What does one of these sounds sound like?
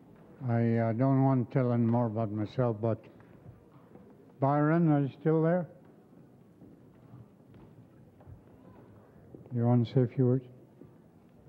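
An elderly man speaks slowly into a microphone, heard over a loudspeaker in a large hall.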